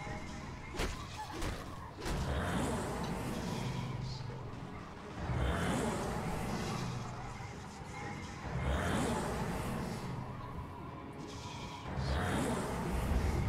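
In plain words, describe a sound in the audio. A young person talks close to a microphone.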